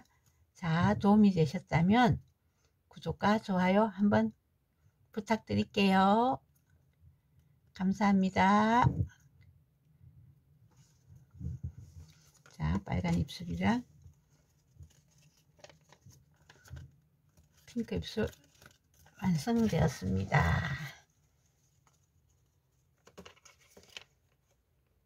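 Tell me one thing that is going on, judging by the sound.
Paper rustles and crinkles as it is folded and pressed.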